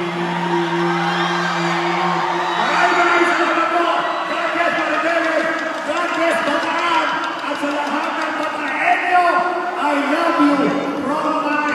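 Loud music plays through loudspeakers.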